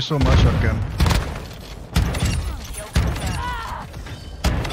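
Gunshots ring out in sharp, loud bursts.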